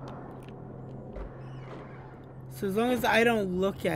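Wooden cupboard doors creak open and shut.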